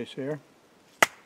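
A metal tool snaps shut with a sharp click.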